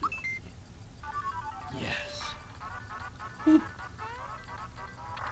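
Game music plays.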